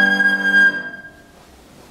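A piano plays along with a flute.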